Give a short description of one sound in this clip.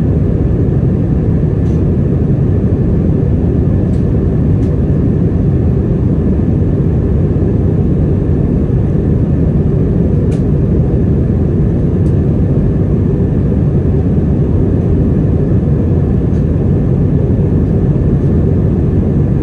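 Jet engines roar in a steady, deep drone.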